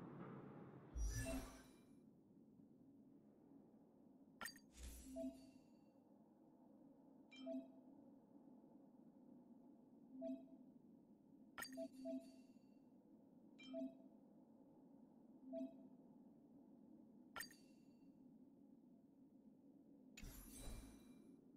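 Whooshing swish sounds play as menus open.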